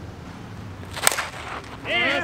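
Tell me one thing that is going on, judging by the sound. A bat cracks sharply against a ball outdoors.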